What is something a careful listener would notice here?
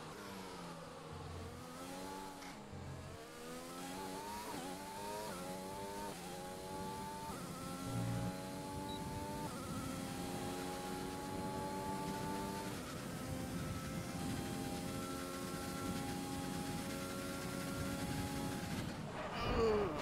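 A racing car engine revs high, rising in pitch with each gear change.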